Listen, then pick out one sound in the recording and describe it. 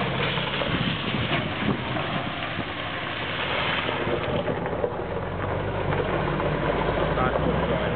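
Tyres skid and scrape on wet gravel.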